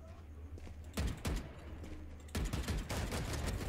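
A rifle fires several rapid shots.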